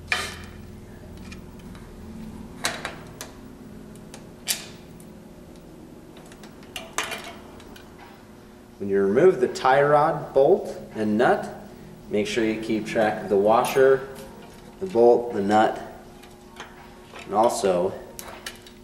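Metal parts click and tap as a bicycle is worked on by hand.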